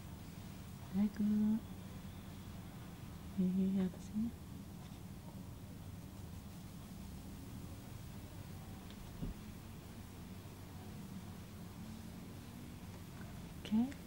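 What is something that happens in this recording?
A young woman speaks close by in short, quiet bursts.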